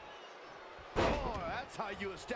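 A body slams hard onto the wrestling mat.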